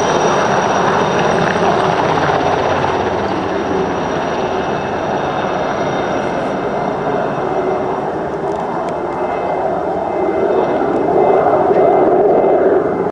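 A turbine helicopter's engine whines.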